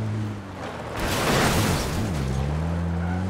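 A vehicle crashes into something with a loud rumble.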